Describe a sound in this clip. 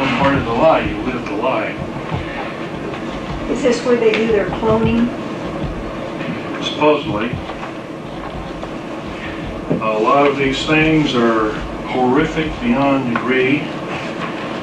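A man talks, heard from a distance in a room.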